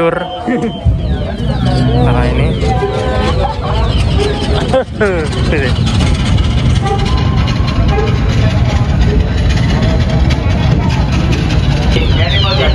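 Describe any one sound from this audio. A small rail vehicle rumbles steadily along tracks.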